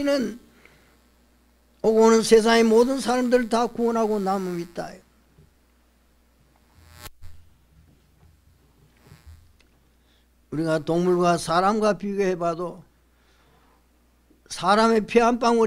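An elderly man speaks calmly, with long pauses, through a microphone.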